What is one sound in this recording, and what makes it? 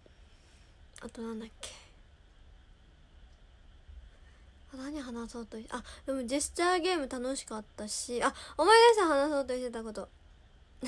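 A young woman speaks softly and close up, in short bursts with pauses.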